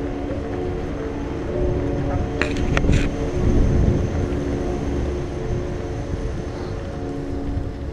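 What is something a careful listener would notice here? Bike tyres roll and crunch over loose gravel.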